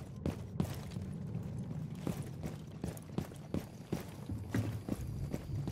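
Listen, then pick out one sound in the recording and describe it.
Footsteps run across grass in a video game.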